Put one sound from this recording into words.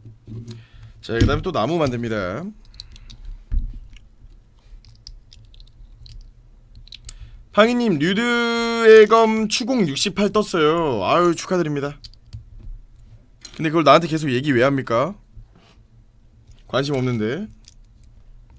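A young man talks casually close to a microphone, in short bursts.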